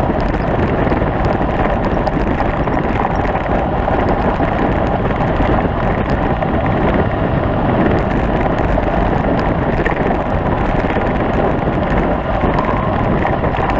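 Wind buffets loudly against a moving rider.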